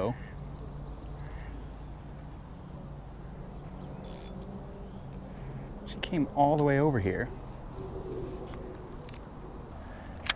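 A fishing reel winds in line.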